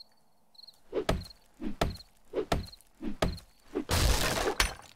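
A wooden club thuds repeatedly against a wooden crate.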